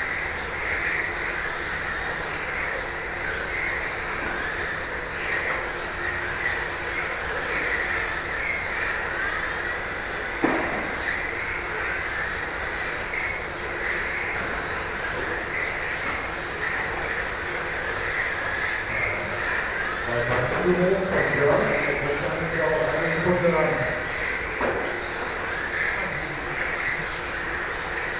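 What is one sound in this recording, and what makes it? Electric radio-controlled touring cars whine as they race around a carpet track in a large indoor hall.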